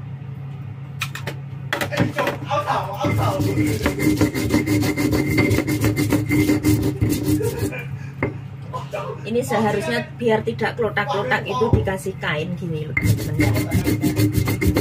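A stone pestle grinds and scrapes against a stone mortar.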